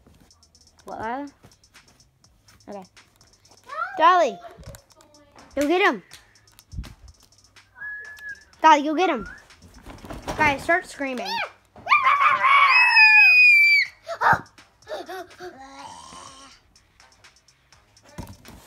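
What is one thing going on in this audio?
A small boy talks close by.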